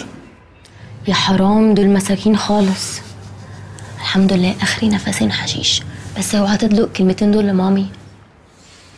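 A young woman speaks earnestly nearby.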